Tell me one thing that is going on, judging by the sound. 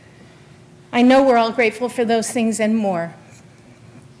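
A woman sings through a microphone in a large echoing hall.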